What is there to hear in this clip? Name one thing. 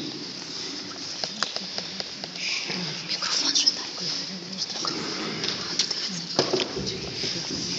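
A man chants in a low voice in an echoing hall.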